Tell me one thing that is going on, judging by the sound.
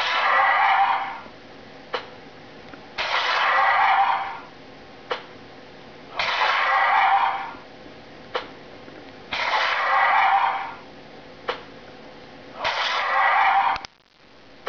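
Juicy splattering game sound effects play in bursts from a small speaker.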